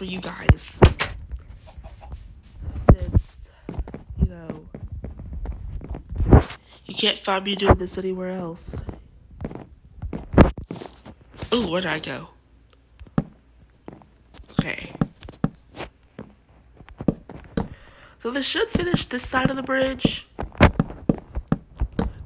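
Wooden blocks are placed with short hollow knocks.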